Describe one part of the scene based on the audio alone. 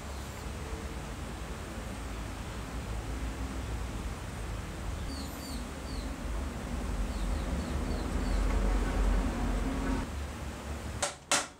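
A small metal gear clicks softly as it slides onto a shaft.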